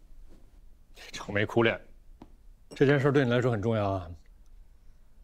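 A young man speaks calmly and quietly, close by.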